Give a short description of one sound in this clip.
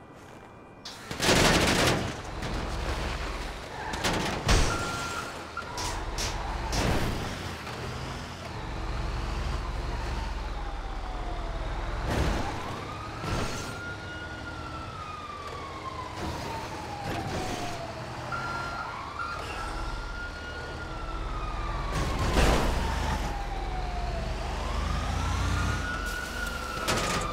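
A truck engine rumbles low and revs as it drives.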